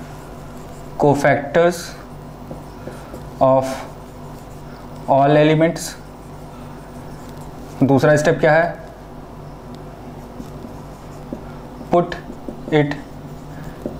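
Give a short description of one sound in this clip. A man speaks calmly in short phrases nearby, with pauses.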